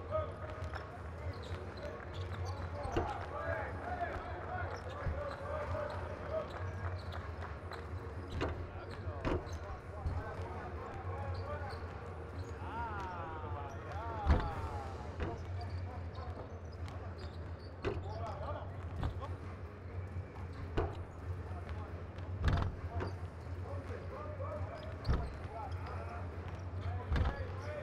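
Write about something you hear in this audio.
Basketballs bounce on a wooden court in a large echoing hall.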